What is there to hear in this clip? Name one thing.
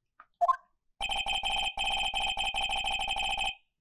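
Rapid electronic beeps chatter in a quick, steady stream.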